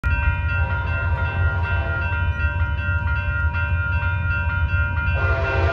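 A railroad crossing bell rings steadily and quickly.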